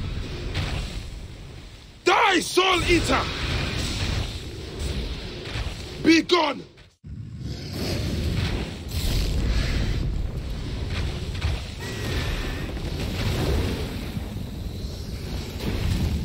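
Magic energy blasts crackle and boom.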